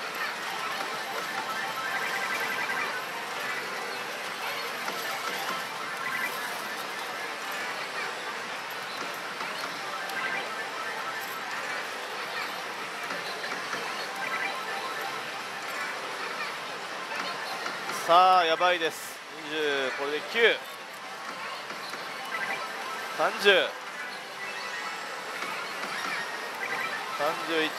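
A slot machine plays a busy electronic jingle throughout.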